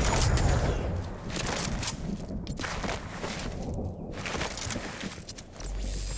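Quick footsteps patter on a hard road.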